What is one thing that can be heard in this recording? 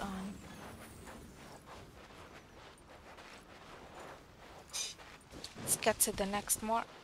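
Footsteps patter quickly on sand and grass.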